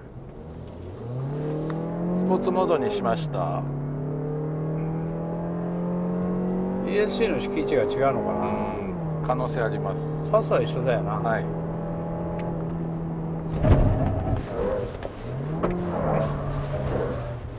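A car engine revs up and holds a steady hum.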